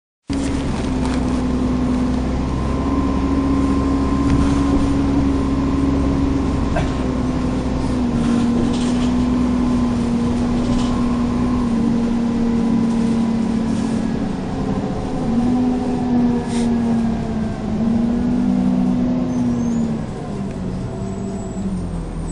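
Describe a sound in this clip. A bus rattles and clatters over the road.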